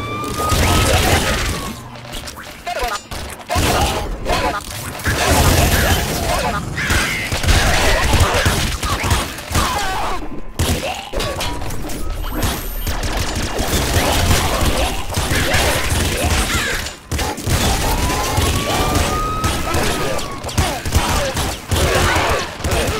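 Game explosions thud and burst.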